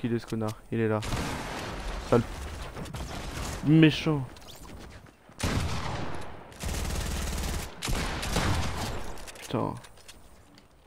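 Gunshots and explosions crack and boom in quick bursts.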